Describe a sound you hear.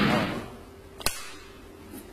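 A clapperboard snaps shut with a sharp clack.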